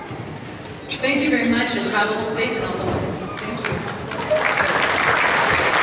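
A young woman sings through a microphone.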